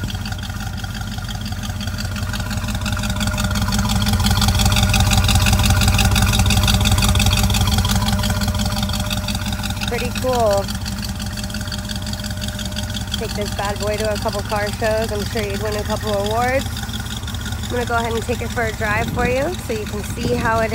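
A small-block V8 pickup idles, rumbling through its exhaust.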